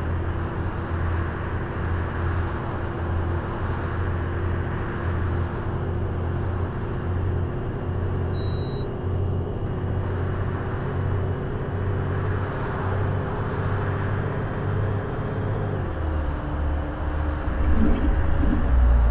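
A bus engine hums steadily as the bus drives along, dropping in pitch near the end.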